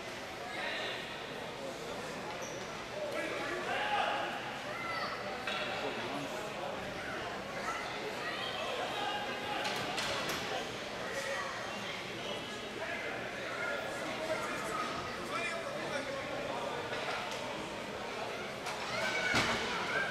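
Men and women in the crowd talk and call out in a large echoing hall.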